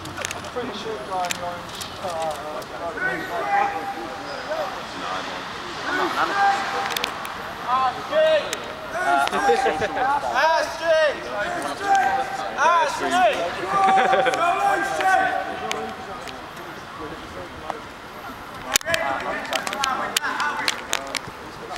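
Several people chat in the background outdoors.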